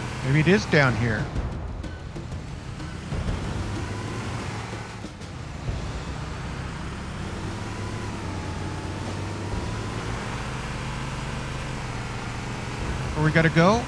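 A vehicle engine hums steadily as it drives over rough ground.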